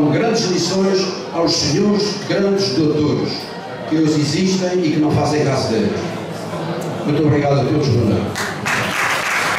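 An elderly man speaks with animation into a microphone, heard through loudspeakers.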